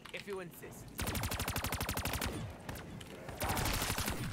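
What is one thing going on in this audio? A rapid-fire gun shoots in fast bursts.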